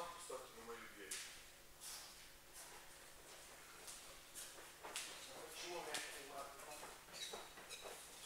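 Young men talk and call out in a large echoing hall.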